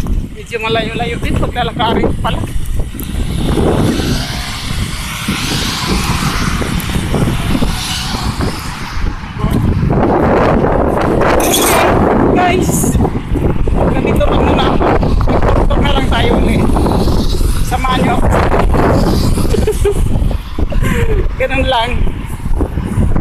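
Cars drive past on a busy road outdoors.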